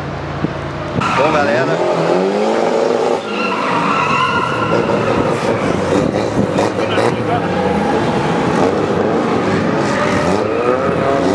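Car engines rev and whine up and down in pitch nearby.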